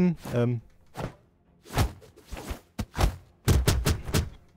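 Fighters' attacks thump and whoosh in quick bursts.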